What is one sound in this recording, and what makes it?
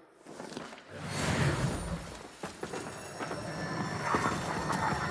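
A sword swings with a fiery whoosh.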